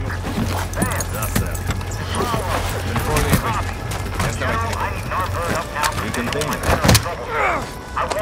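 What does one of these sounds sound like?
Gunshots ring out in the distance.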